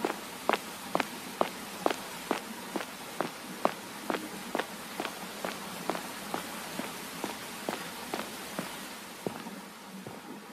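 Footsteps tap steadily on a hard surface.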